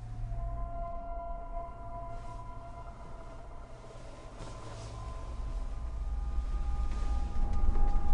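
Bedsheets rustle as a woman shifts and gets out of bed.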